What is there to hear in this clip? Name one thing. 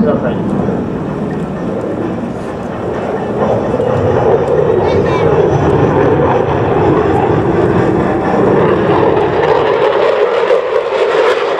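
A jet engine roars loudly overhead as a fighter plane flies past.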